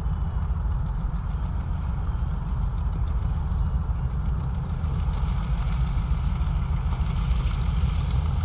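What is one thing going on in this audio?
The propeller engines of a twin-engine plane rumble and drone steadily as it taxis.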